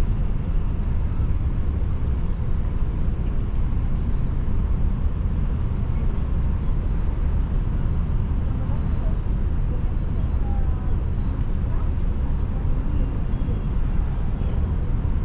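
Strong wind buffets and rumbles steadily outdoors.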